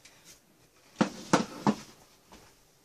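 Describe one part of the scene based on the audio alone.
A metal pan clatters and scrapes as it is set down.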